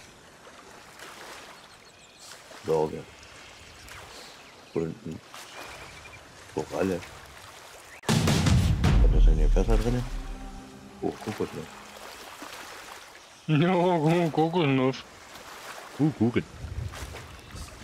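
Waves slosh and lap on open water.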